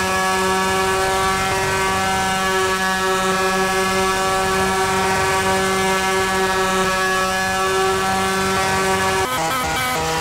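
A motorcycle engine idles with a steady drone.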